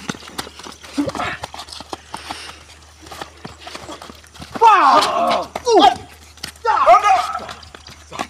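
Men shout excitedly outdoors.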